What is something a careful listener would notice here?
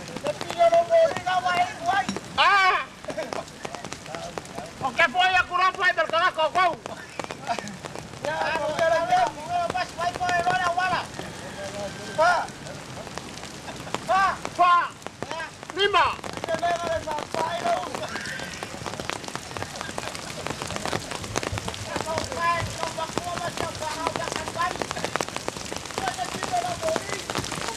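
A man sings in a wavering voice outdoors.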